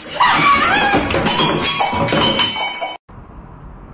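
A woman shouts with excitement close by.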